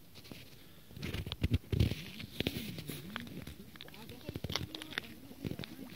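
Water bubbles and gurgles up in a small pool.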